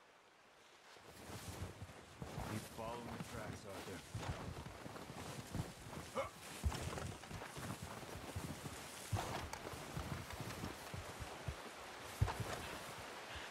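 Footsteps crunch quickly through deep snow.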